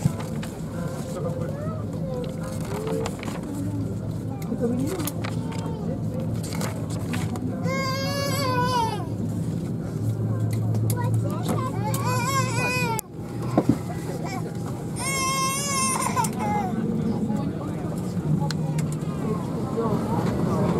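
A steady low airplane cabin hum drones.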